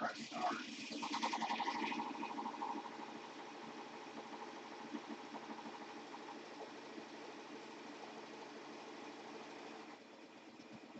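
An embroidery machine whirs and stitches rapidly.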